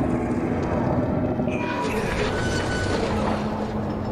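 A metal gate rattles as it is pushed open.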